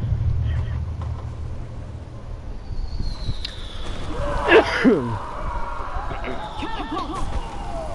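Soldiers shout and run in a battle.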